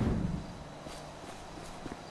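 Footsteps run across a dirt road.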